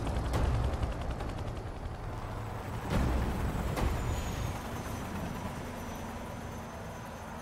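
A helicopter's rotor blades thump loudly.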